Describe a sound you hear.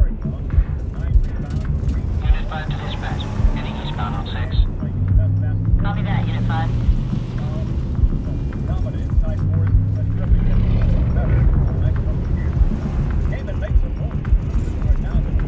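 A car engine rumbles low and steady with road noise.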